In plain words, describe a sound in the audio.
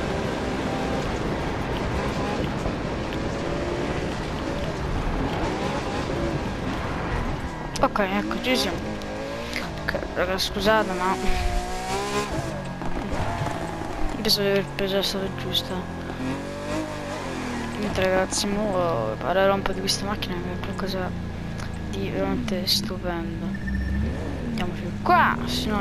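A sports car engine roars at high speed and then winds down.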